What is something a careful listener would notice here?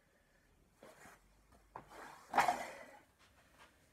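A dumbbell clanks as it is set down.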